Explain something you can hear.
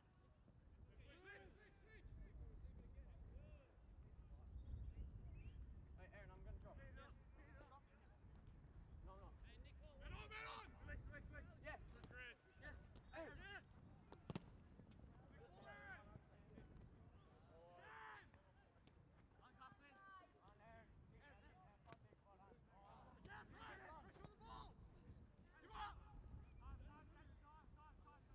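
Young players shout and call to each other across an open field.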